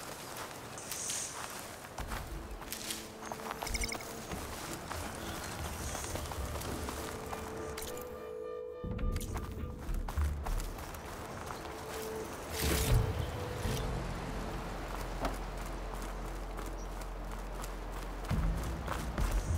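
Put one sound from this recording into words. Footsteps rustle quickly through grass and undergrowth.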